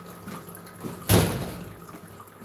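A door bangs shut.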